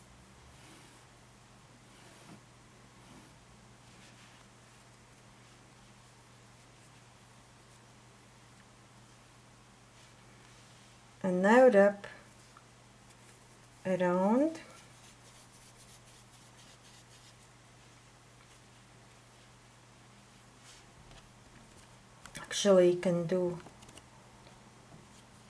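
Yarn rustles softly against knitted fabric as it is pulled through.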